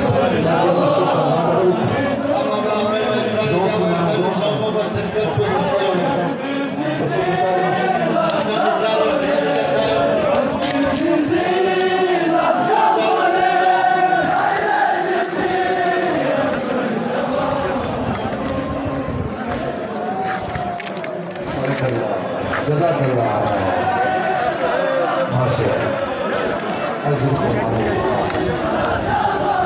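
A large crowd of men chants loudly together outdoors.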